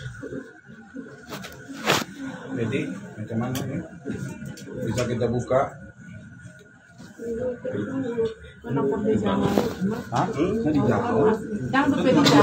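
Several women and men talk and cry out close by.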